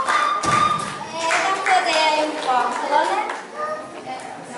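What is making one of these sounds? A group of children sings together in a hall.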